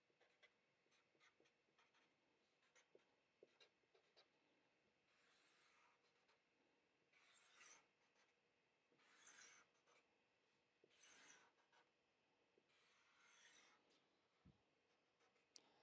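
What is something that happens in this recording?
A marker squeaks faintly across a board.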